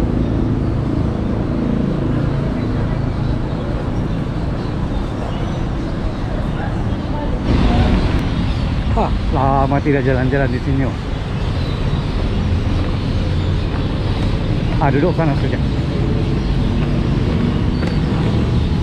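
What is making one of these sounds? City traffic rumbles steadily in the open air.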